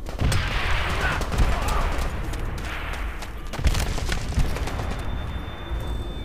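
Heavy footsteps thud on hard ground.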